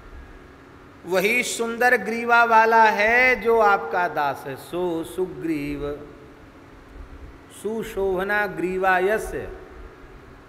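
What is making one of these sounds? An elderly man speaks calmly and expressively into a close microphone.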